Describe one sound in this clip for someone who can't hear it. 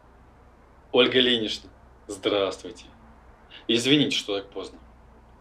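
A man talks on a phone nearby with animation.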